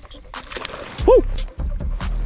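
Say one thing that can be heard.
A lure splashes into water.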